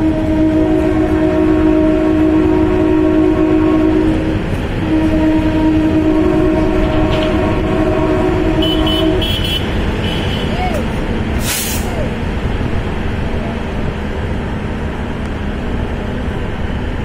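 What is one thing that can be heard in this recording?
A diesel-electric multiple unit train rumbles along the rails.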